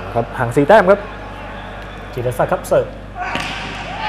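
A volleyball is struck hard by hand in an echoing gym.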